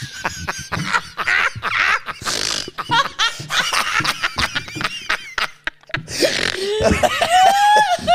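A young woman laughs heartily into a close microphone.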